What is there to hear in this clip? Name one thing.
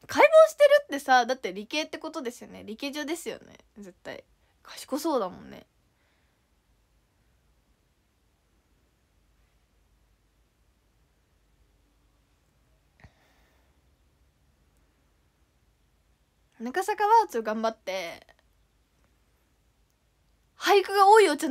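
A young woman talks chattily and close to a microphone, with long pauses.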